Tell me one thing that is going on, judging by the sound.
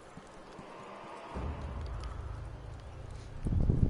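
Footsteps creak on wooden boards.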